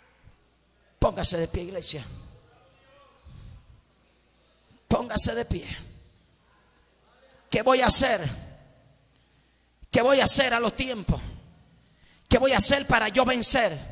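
A man preaches loudly and forcefully into a microphone, heard through loudspeakers in an echoing hall, in short bursts with pauses.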